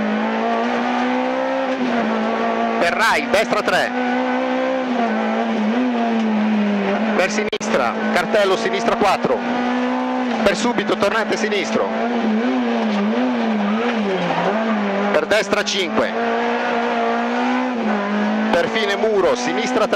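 A rally car engine roars loudly from inside the cabin, its pitch rising and falling with gear changes.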